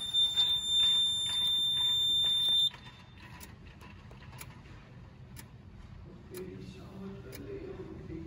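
Buttons click as a finger presses them.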